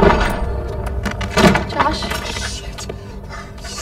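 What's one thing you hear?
A boy bangs against a wooden wall.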